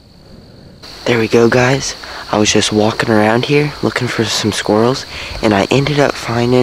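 A young man talks calmly and close up into a microphone.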